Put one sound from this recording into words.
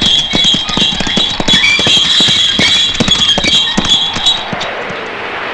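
A horse-drawn cart rattles and clatters over rough ground.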